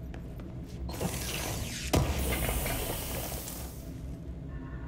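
Debris bursts and scatters with a loud rushing clatter.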